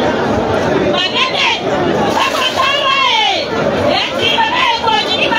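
Shrill voices whoop and cry out, rising and falling in pitch.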